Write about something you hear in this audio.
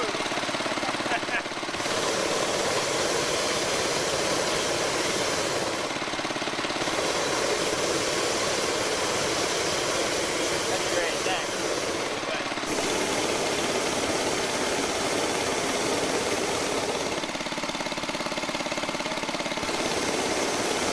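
A gas burner roars loudly in long blasts with short pauses between them.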